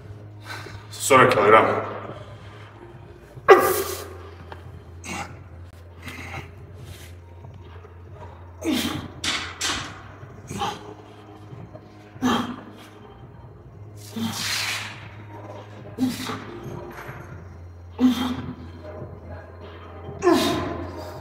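A man exhales sharply and loudly with each dumbbell lift.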